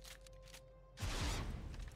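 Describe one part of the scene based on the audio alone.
A weapon fires with a sharp electric blast.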